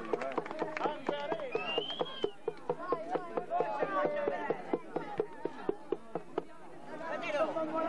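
A crowd of young people shouts and cheers outdoors.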